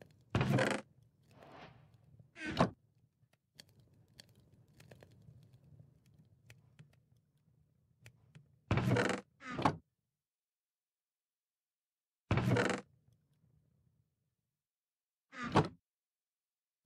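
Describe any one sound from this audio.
A wooden chest creaks open and shut.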